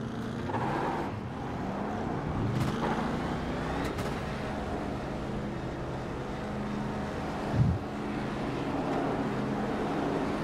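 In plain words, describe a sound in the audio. Race car engines roar past on the track.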